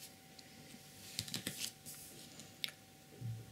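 A sheet of board rustles and knocks as it is lifted.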